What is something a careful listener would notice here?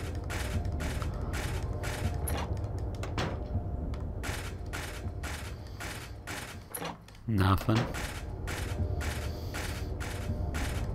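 Footsteps thud at a steady, quick pace.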